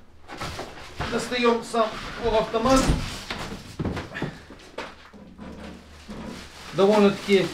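Plastic wrapping rustles and crinkles.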